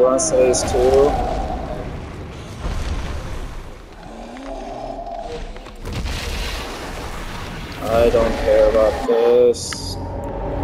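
A giant creature groans loudly and deeply.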